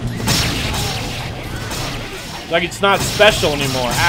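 Weapons clash and strike in a fight.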